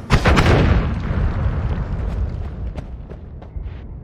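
Game fire crackles.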